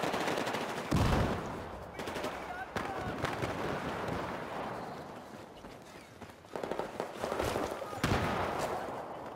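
Explosions boom with deep thuds nearby.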